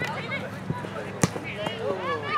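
A ball is kicked on grass.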